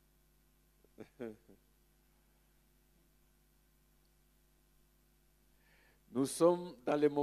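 A man speaks through a microphone in short, lively bursts.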